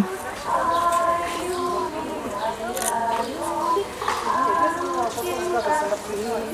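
Girls and women sing a folk song together, close by.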